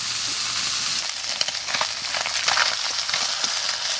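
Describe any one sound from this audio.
A metal spatula scrapes against a metal pan.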